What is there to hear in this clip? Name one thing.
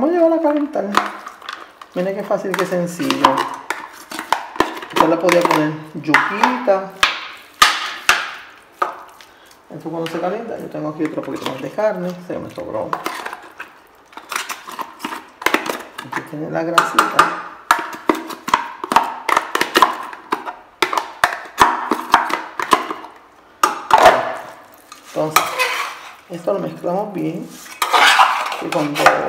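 A spoon scrapes and taps food into a metal pot.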